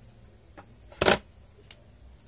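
A battery is picked up from a hard surface with a short knock.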